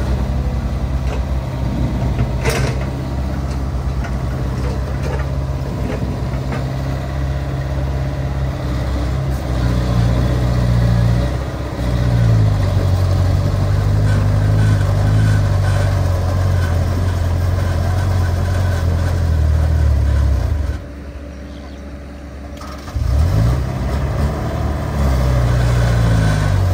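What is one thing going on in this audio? Excavator engines rumble and roar steadily.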